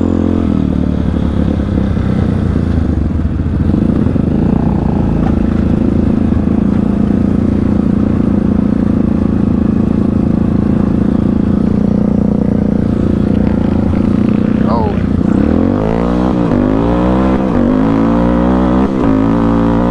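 A dirt bike engine drones close by, revving up and down.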